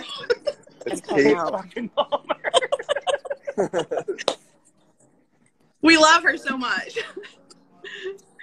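Women laugh loudly over an online call.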